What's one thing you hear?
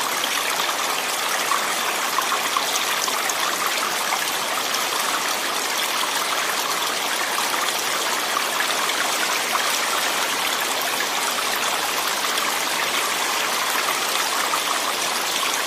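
Floodwater rushes past steadily.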